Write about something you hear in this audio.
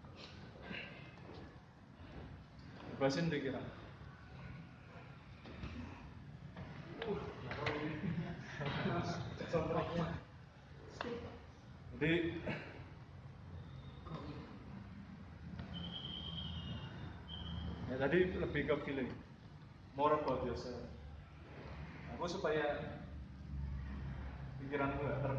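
A man talks calmly nearby, with a slight echo of a large hall.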